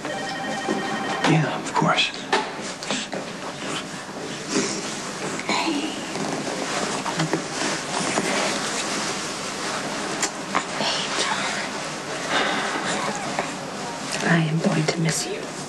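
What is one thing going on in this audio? A man speaks quietly and calmly close by.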